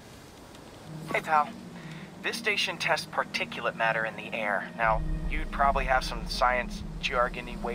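A young man talks casually over a phone call.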